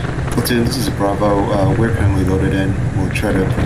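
A man speaks over a radio.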